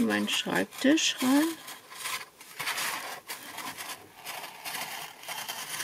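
A utility knife scores through cardboard.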